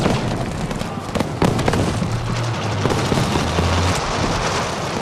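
A tank engine rumbles and clanks as the tank moves.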